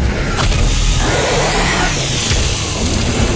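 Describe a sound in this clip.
A blade slashes and tears through a monster with a wet crunch.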